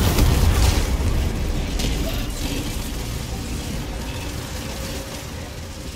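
Fire crackles.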